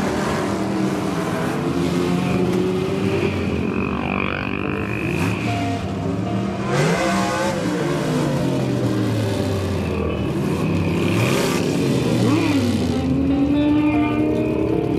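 Motorcycle engines rumble and rev as a line of bikes rolls past close by.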